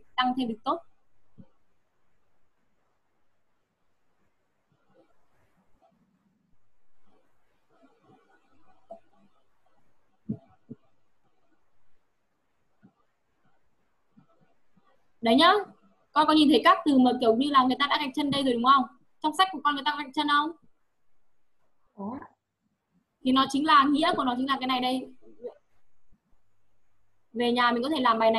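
A woman speaks into a microphone over an online call, in a teaching tone, with pauses.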